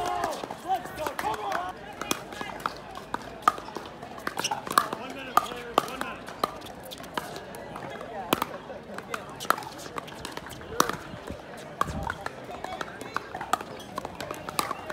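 Paddles hit a plastic ball with sharp hollow pops.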